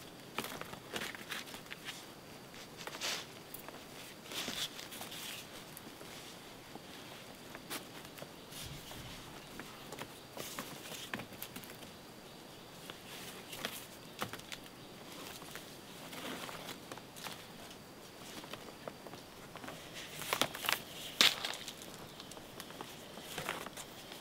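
Dry leaves and twigs rustle and crackle as hands scrape the ground.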